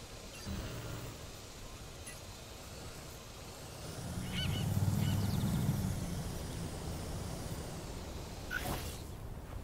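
A small drone hums and whirs as it flies.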